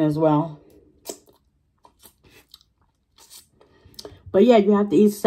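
A woman chews food with soft smacking sounds.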